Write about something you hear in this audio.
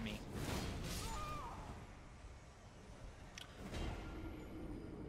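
Metal weapons clash and strike in a close fight.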